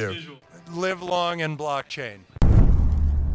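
A man speaks with animation into a handheld microphone.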